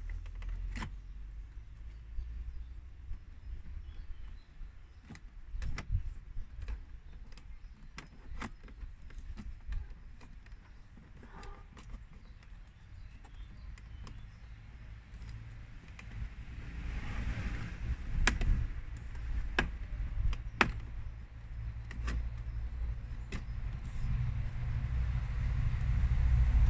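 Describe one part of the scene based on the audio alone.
Plastic parts click and knock sharply, close by.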